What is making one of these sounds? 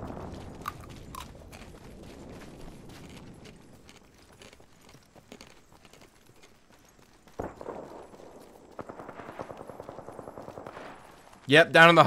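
Quick footsteps patter over dirt and grass.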